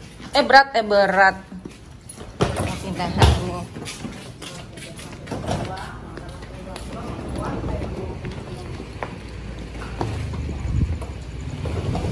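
Suitcase wheels rattle over a tiled floor.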